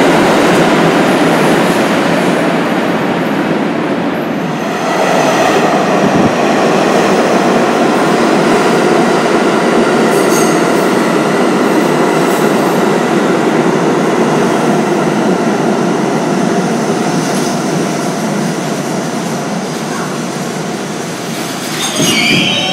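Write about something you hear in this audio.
A subway train rumbles and roars loudly past a platform in an echoing station.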